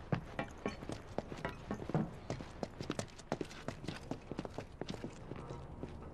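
Footsteps climb metal stairs.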